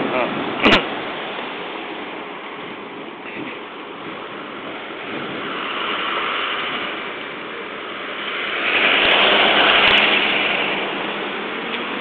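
A pickup truck drives slowly past nearby, its engine rumbling.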